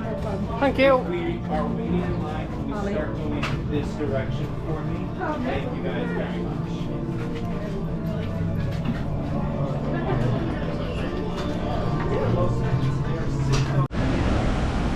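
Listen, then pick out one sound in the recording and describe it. A crowd of people chatters close by.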